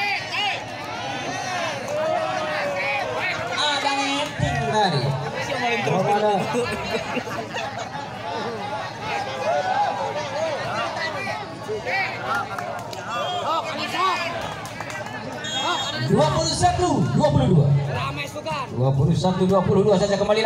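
A crowd of men chatter and shout outdoors.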